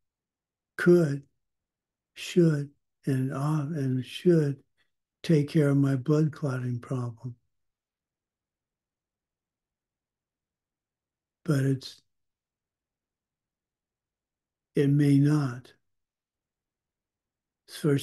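An elderly man speaks calmly in short bursts with long pauses, heard through an online call.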